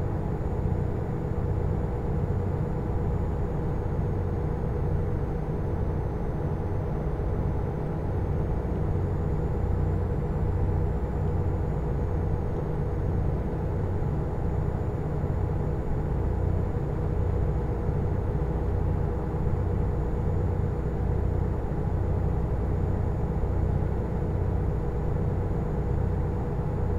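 A truck engine drones steadily as it drives along a highway.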